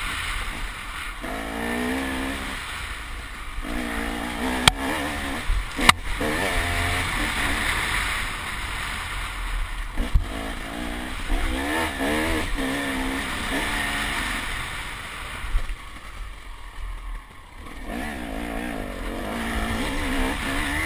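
A dirt bike engine revs up and down close by, rising and falling in pitch.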